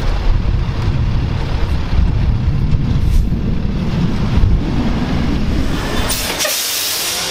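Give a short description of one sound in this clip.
A garbage truck's engine rumbles as it drives closer.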